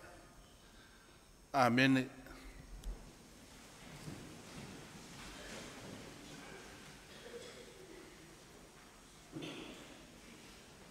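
An elderly man preaches with feeling through a microphone in a large echoing room.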